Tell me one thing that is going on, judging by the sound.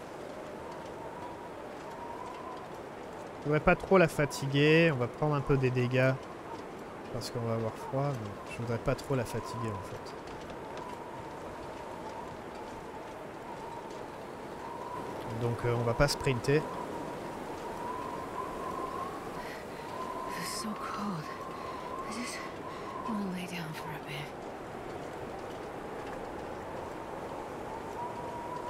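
Wind blows through a snowy forest.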